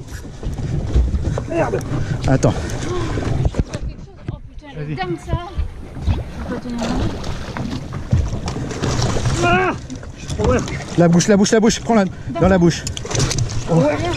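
Waves slap against a boat's hull.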